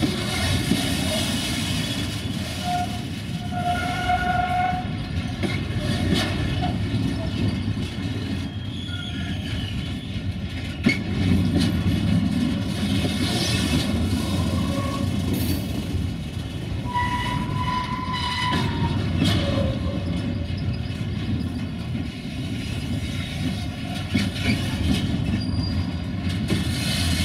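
Train wheels squeal and screech on the rails.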